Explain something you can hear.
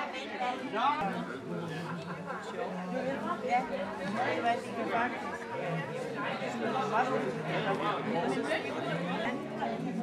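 An elderly woman talks calmly up close.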